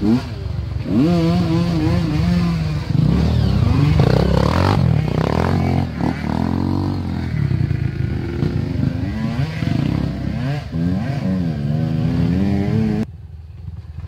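A second dirt bike roars past close by, engine rising and falling.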